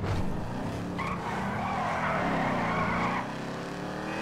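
Tyres screech as a car skids around a bend.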